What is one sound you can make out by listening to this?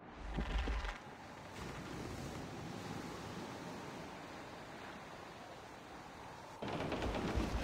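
Ocean water rushes and splashes against a wooden ship's hull.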